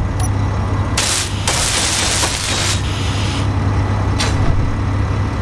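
A welding tool hisses in short bursts.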